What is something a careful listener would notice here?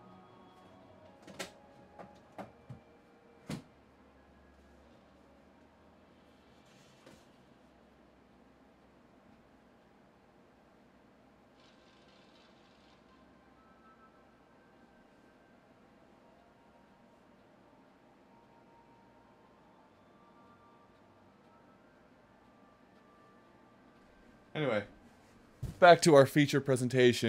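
Soft game music plays quietly.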